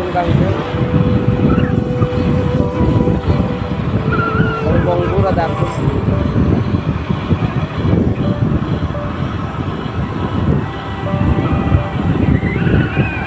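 A vehicle's engine hums as it drives along.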